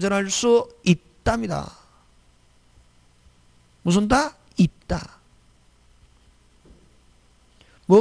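A middle-aged man speaks into a microphone with animation, in short bursts with pauses.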